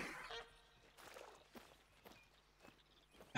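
Footsteps crunch on dry sandy ground.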